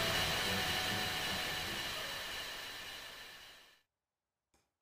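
A shimmering magical chime rings and slowly fades away.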